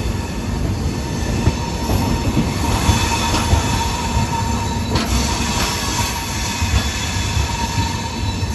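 Wind buffets loudly past the open train door.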